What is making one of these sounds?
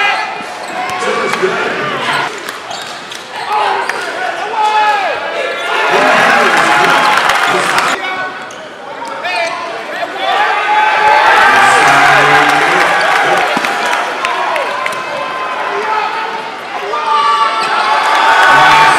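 A crowd cheers in a large echoing gym.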